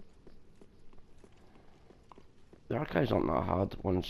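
Armoured footsteps run quickly across stone.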